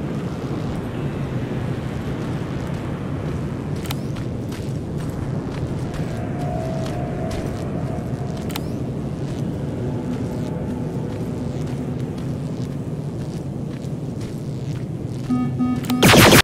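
Clothing rustles as a body crawls slowly over the ground.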